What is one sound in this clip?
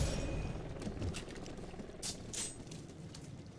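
A rifle clicks and rattles as it is reloaded.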